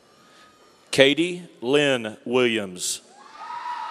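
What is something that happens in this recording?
A man reads out names loudly through a loudspeaker in a large echoing hall.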